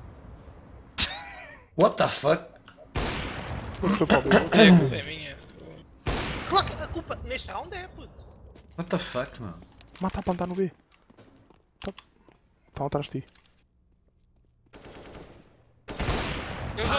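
Gunshots crack sharply.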